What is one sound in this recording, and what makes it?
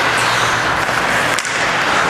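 A hockey stick taps a puck on the ice.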